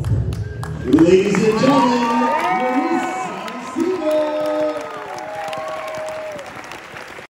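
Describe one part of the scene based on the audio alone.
A crowd cheers and whoops loudly in a large echoing hall.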